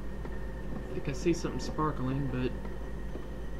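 A man speaks briefly in a low voice nearby.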